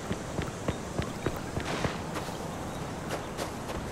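Footsteps tap on a hard path.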